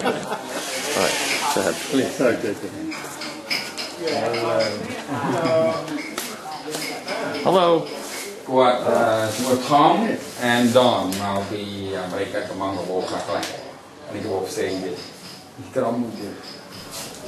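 A man talks nearby in a calm, conversational voice.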